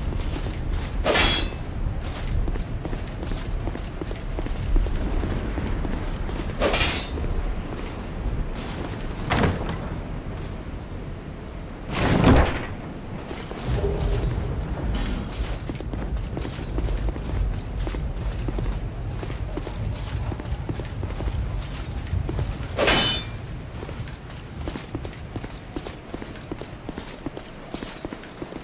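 Footsteps clatter quickly on stone.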